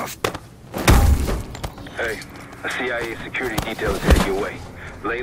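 Heavy blows land in a scuffle.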